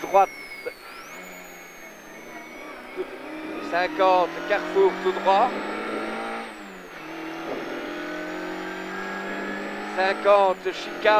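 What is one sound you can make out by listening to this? A man reads out pace notes quickly over a helmet intercom.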